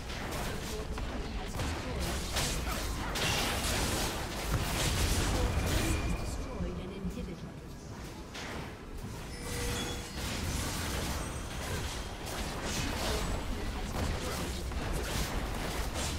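A stone tower crumbles and explodes.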